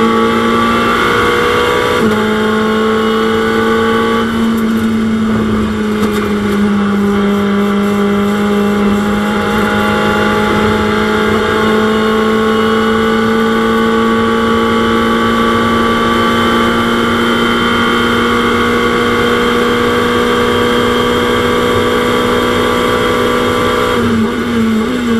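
A racing car engine drones at high revs with a steady, slowly changing pitch.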